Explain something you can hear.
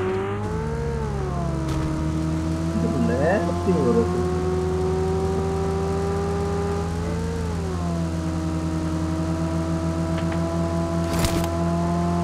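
A vehicle engine hums steadily, rising and falling in pitch as it drives.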